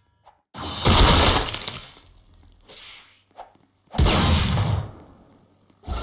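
Electric crackling bursts ring out as a game character strikes.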